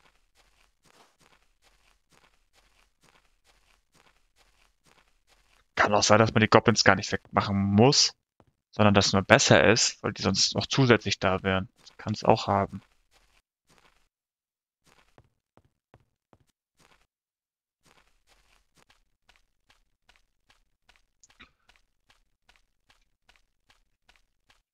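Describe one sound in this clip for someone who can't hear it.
Footsteps tread steadily on dirt and grass.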